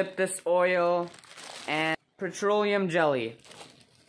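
A plastic bag crinkles as it is handled.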